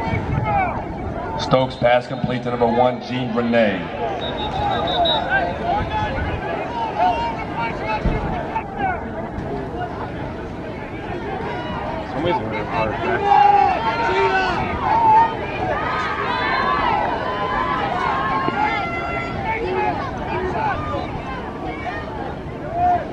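A crowd of people chatters and murmurs outdoors.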